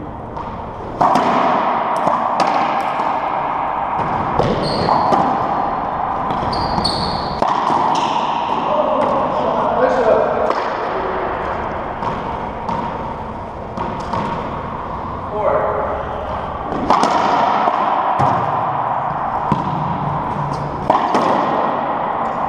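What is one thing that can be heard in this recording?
A racquetball is struck hard with racquets and smacks off the walls, echoing around an enclosed court.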